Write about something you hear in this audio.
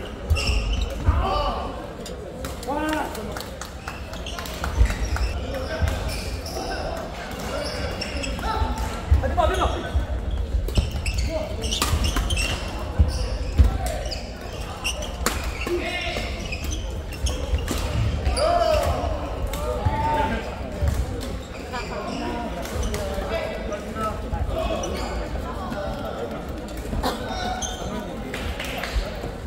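Shoes squeak and thud on a wooden floor.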